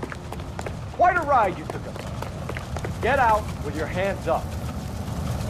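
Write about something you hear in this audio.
A man shouts orders.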